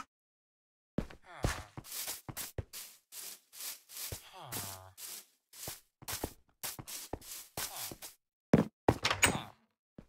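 Footsteps tread quickly over wood and stone.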